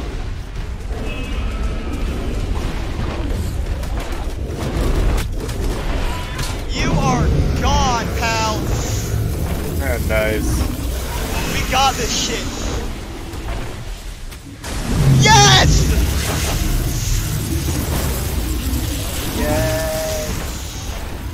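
Heavy blows and blasts boom and rumble.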